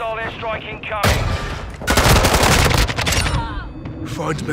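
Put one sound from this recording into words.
Gunfire rattles in a short, loud burst.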